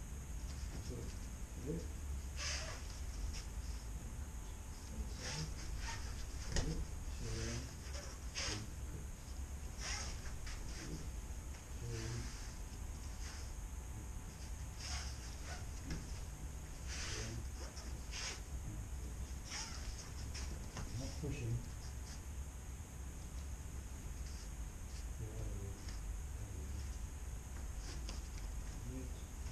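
Bare feet shuffle and slap on a mat.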